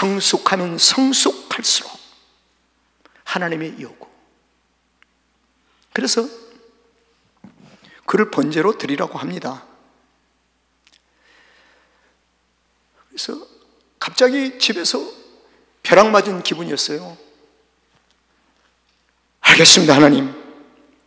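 An elderly man preaches with feeling into a microphone, speaking in short bursts with pauses.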